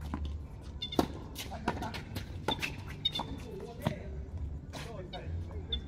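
Tennis rackets strike a ball back and forth with sharp pops.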